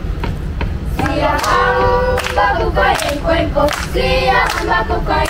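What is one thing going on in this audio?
A group of children sings together outdoors.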